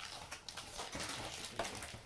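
Cardboard packing scrapes as it is lifted out.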